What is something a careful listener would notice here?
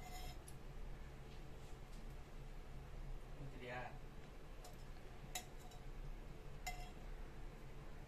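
A metal spoon scrapes and stirs seeds in a metal pan.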